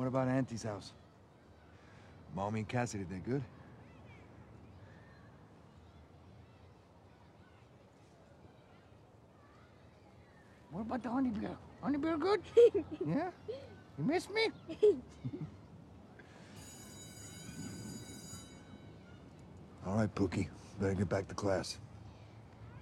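A man speaks softly and close up.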